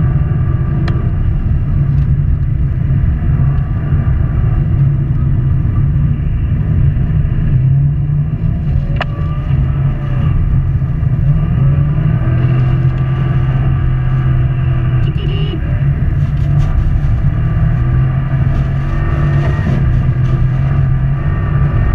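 Studded tyres roar and crunch over ice.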